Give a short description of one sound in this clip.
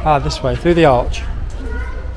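A middle-aged man speaks with animation close to the microphone.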